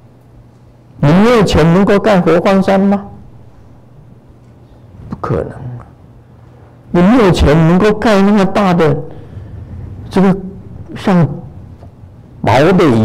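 An elderly man speaks slowly and with emphasis through a microphone, with pauses between phrases.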